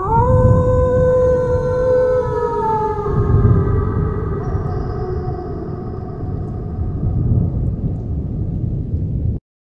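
Thunder rumbles low and steadily.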